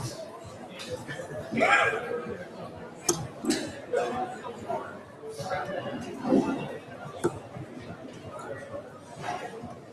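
Darts thud into a dartboard one after another.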